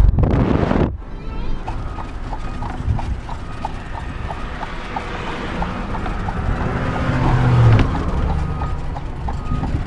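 Carriage wheels rumble and rattle on a road.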